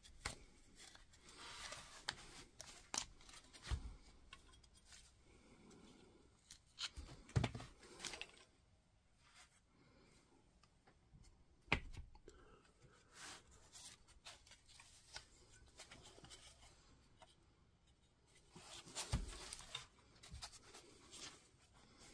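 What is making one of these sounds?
Metal parts clink and scrape close by.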